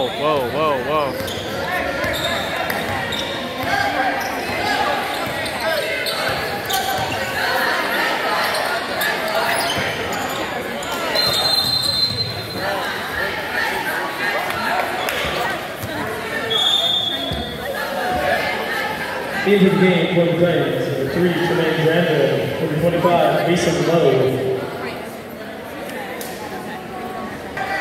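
Spectators chatter and call out in a large echoing hall.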